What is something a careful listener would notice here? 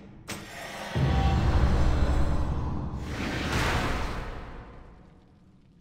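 A magical blast whooshes and roars loudly, then fades away.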